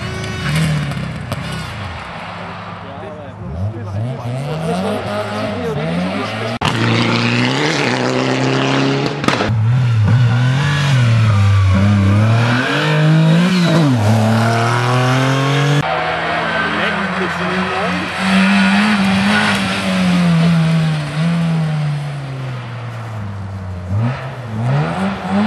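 A rally car engine revs hard and shifts through the gears as it speeds past.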